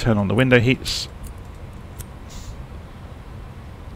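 A cockpit switch clicks once.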